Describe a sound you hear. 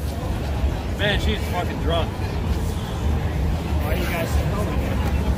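A young man speaks nearby, raising his voice.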